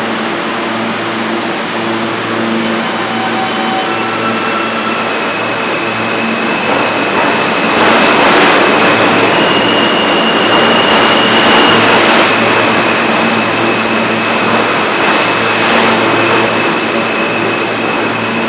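A subway train rumbles past close by.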